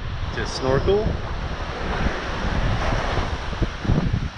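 A man speaks close by, calmly.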